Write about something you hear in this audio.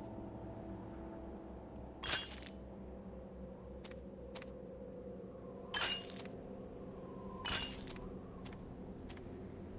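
Game music plays steadily.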